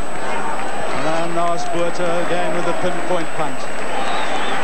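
A crowd sings a chant in unison.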